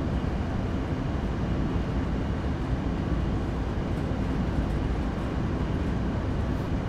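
A diesel locomotive engine rumbles steadily from inside the cab.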